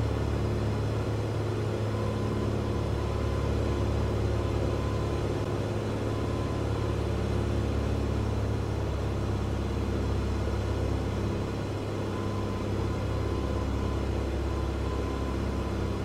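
A small propeller plane's engine drones steadily from inside the cockpit.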